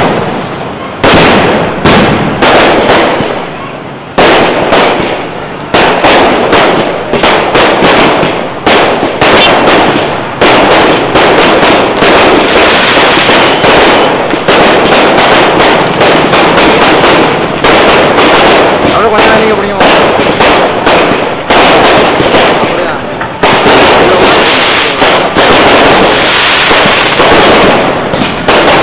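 Fireworks sizzle and crackle in a dense shower of sparks.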